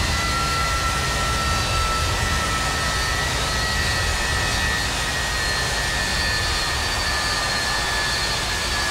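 Jet engines roar and whine steadily in flight.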